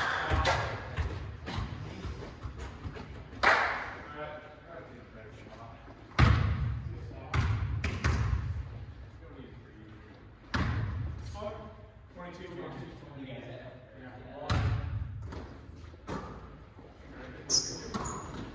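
A basketball bounces loudly on a wooden floor in a large echoing gym.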